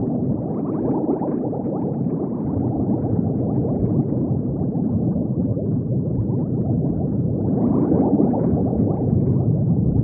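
Bubbles gurgle and burble steadily underwater.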